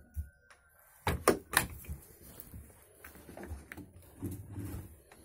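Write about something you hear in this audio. A wooden cage door knocks and rattles as it is opened.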